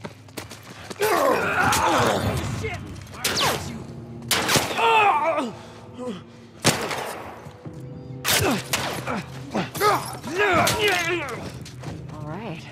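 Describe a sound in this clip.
A man screams and groans in a struggle.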